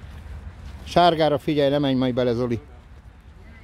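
A man nearby calls out loudly.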